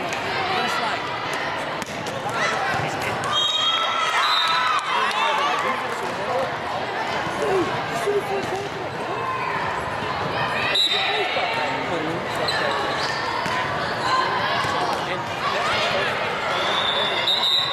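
Young women chatter and call out in a large echoing hall.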